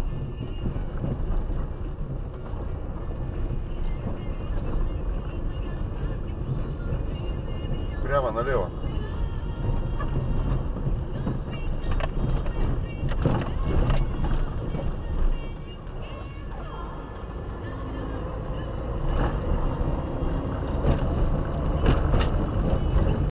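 Tyres rumble on a rough road.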